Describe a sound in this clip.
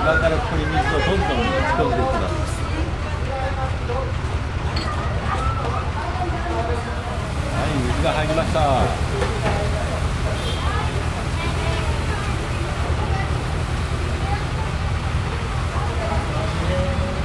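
Men and women talk nearby.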